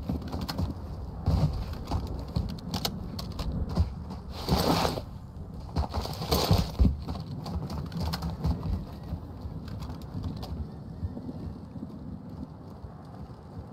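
Footsteps crunch over gravel and rubble.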